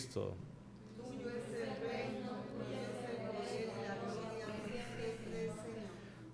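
A man speaks quietly through a microphone.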